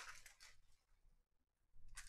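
Cards tap softly as they are squared on a stack.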